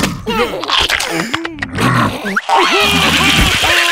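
A gruff cartoon creature growls and shouts.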